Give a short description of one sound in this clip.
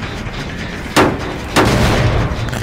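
Metal clangs loudly twice as a machine is struck.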